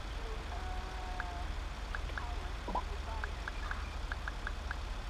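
Short electronic phone beeps sound in quick succession.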